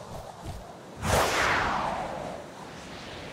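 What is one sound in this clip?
A loud whoosh of air sweeps past and slowly fades.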